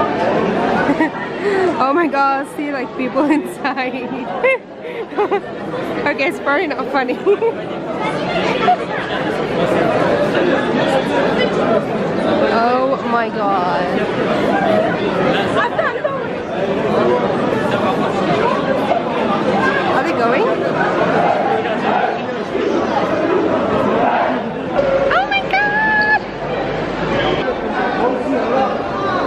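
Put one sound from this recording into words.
A crowd of people chatters and murmurs all around in a large echoing hall.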